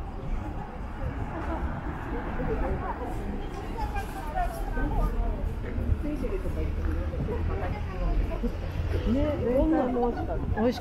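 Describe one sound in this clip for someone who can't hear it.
Men and women chat in low voices nearby outdoors.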